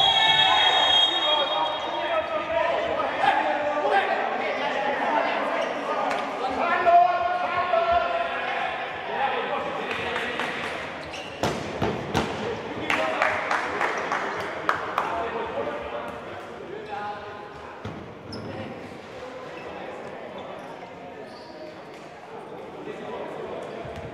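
Sports shoes squeak on a hard court.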